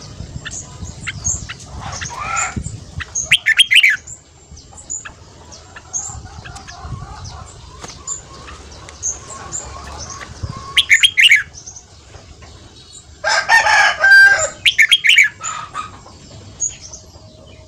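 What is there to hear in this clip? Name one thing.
A caged bird sings loud, bright chirping phrases close by.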